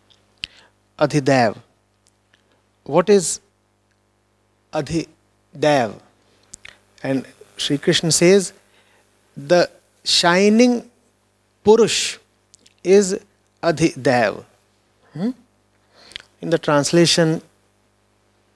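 A man speaks calmly and thoughtfully into a close microphone, with pauses.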